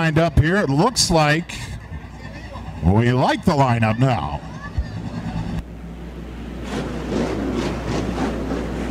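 Race car engines rumble and roar as a pack of cars drives past close by.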